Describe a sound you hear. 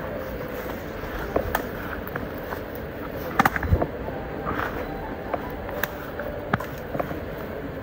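Tall grass rustles as a man pushes through it.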